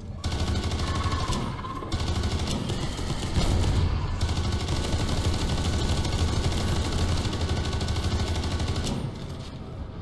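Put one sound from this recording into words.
Gunfire blasts in rapid bursts.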